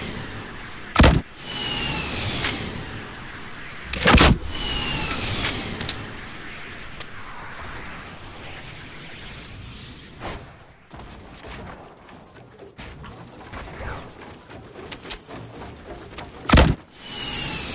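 Loud gunshots ring out a few times.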